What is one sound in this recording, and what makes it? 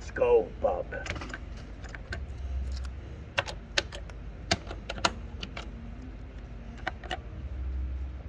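Buttons click sharply on an arcade machine.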